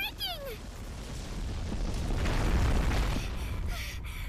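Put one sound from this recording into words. A deep rumble rolls as a stone wall crumbles.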